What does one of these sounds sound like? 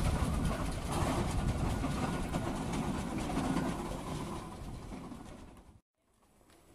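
Carriage wheels crunch on gravel.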